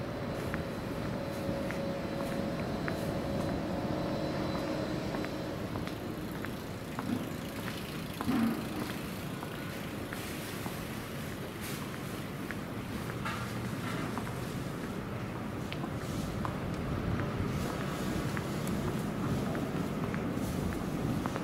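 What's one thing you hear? Footsteps tap on pavement at a steady walking pace.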